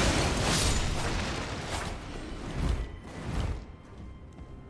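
A sword clashes and slashes in combat.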